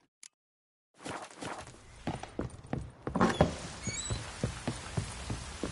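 Footsteps thud along at a steady pace.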